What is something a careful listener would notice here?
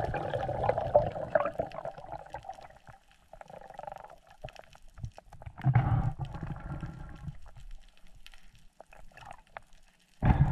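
Air bubbles from a diver's breathing gurgle and rumble in bursts underwater.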